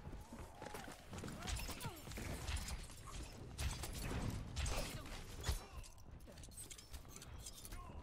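Footsteps patter quickly.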